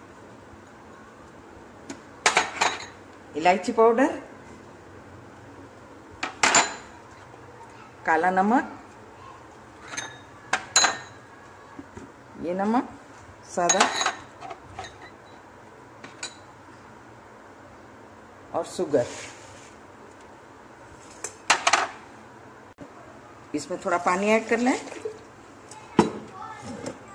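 A plastic jar knocks and clicks as it is handled.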